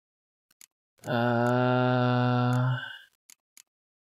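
A man hums one long, steady note close to a microphone.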